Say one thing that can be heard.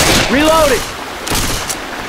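A pistol is reloaded with metallic clicks.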